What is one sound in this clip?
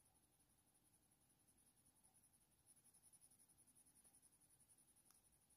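A coloured pencil scratches softly and rapidly on paper.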